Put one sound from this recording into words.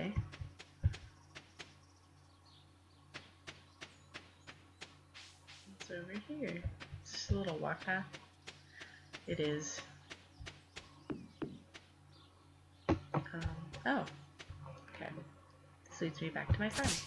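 Soft footsteps patter quickly along a path.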